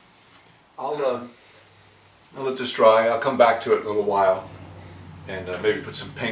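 A middle-aged man speaks calmly and explains, close by.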